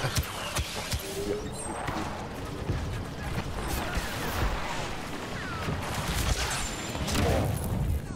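An electric lightning weapon crackles and hums.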